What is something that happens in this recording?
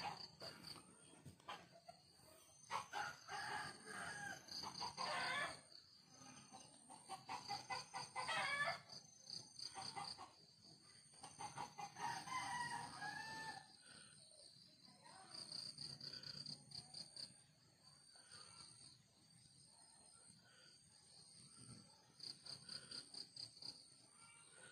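A knife scrapes and shaves wood in quick strokes.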